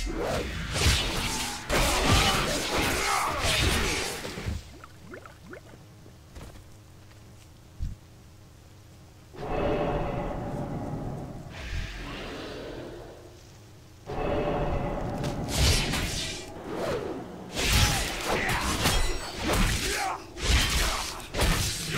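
Weapons strike and spells burst in a fight.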